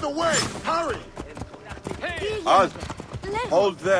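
Horse hooves thud on packed dirt.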